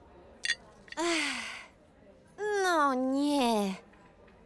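A young woman gasps and cries out in alarm.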